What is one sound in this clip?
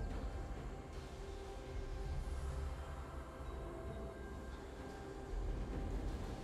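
Game sound effects of spells and attacks play in quick succession.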